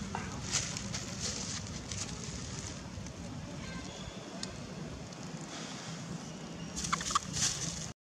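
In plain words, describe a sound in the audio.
Dry leaves rustle and crackle as a monkey moves over them.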